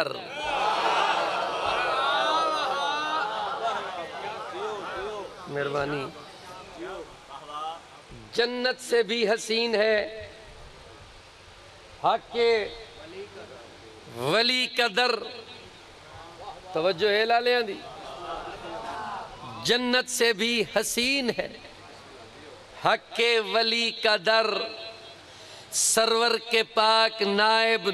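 A middle-aged man recites loudly and with passion into a microphone, in short bursts, heard through loudspeakers outdoors.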